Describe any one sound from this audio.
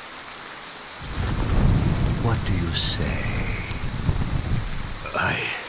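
A man speaks mockingly and with relish close by.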